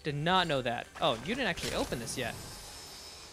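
A shimmering chime rings out as a treasure chest opens.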